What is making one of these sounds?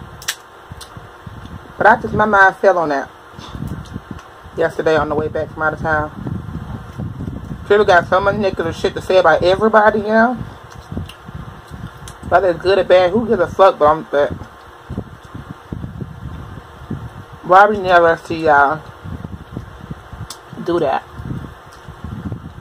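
Hands crack and peel a king crab shell.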